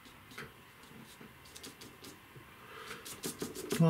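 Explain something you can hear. A palette knife scrapes softly across paper.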